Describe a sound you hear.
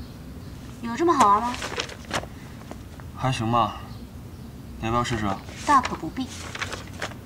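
A young man speaks calmly and quietly nearby.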